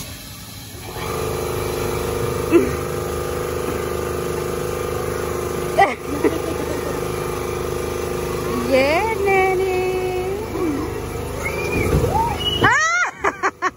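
A ride's motor hums steadily.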